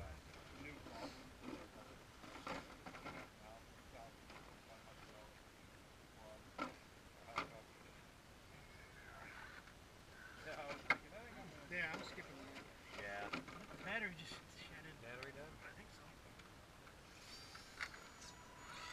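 Plastic tyres scrape and knock against rock.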